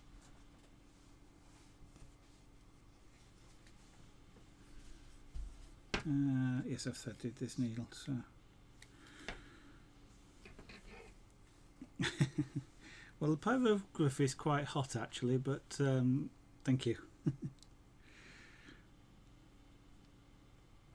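A needle tool punches softly through cloth.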